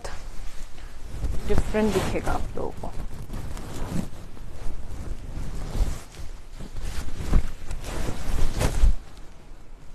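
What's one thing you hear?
Silk fabric rustles as it is handled.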